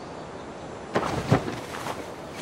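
A hard plastic object clatters as it is picked up.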